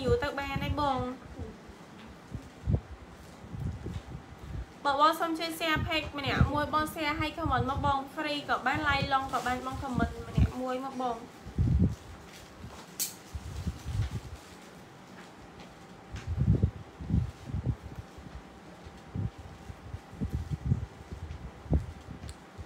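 Fabric rustles as clothing is handled.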